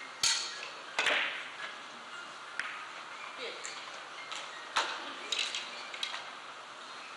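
Billiard balls click against each other and knock off the cushions.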